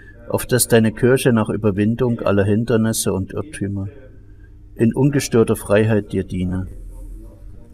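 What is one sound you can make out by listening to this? An elderly man chants loudly nearby.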